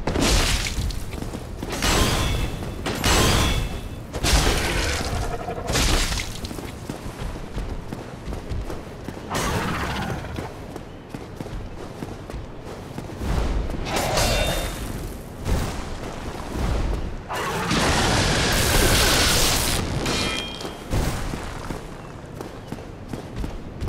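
Heavy weapons clash and thud in a fight.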